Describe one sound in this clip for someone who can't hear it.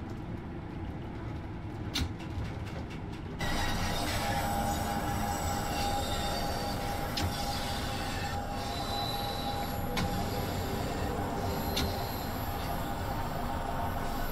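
A train rumbles along the rails through a tunnel, slowing down.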